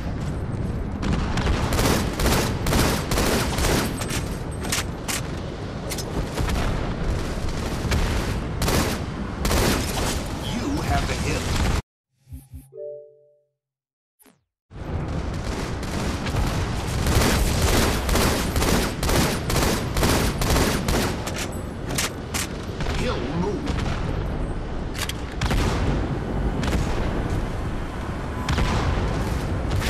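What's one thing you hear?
Rapid gunfire rattles and cracks in a video game.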